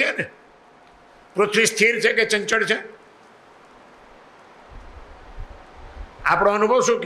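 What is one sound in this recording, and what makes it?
An elderly man speaks with animation into a microphone, in short bursts with pauses.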